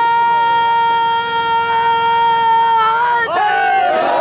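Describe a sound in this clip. A man chants in a long held, wavering tone through a loudspeaker.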